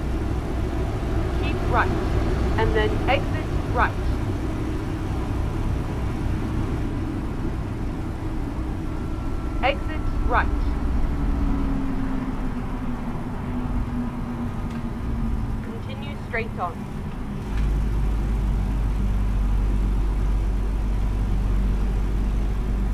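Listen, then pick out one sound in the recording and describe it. A truck engine hums steadily from inside the cab.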